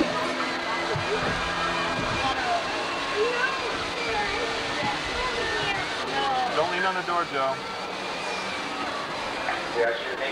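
A large outdoor crowd chatters and murmurs below.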